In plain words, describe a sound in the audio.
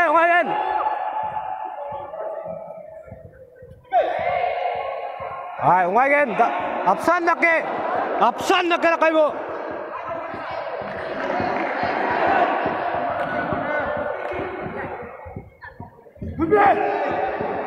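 Young men shout and cheer loudly in a large echoing hall.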